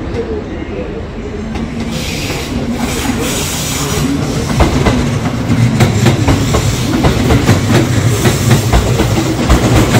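A train rolls into a station, its wheels rumbling and clacking over rail joints.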